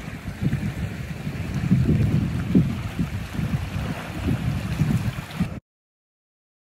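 Seawater washes and surges over rocks.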